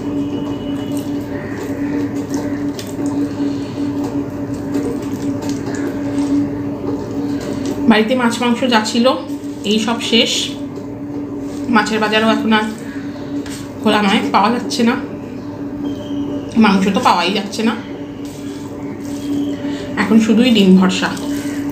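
A hand squishes and mixes rice and curry on a plate.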